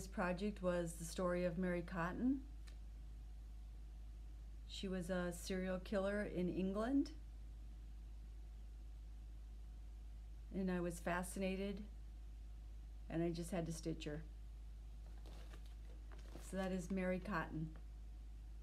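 A middle-aged woman speaks calmly and close to the microphone, in short bursts with pauses.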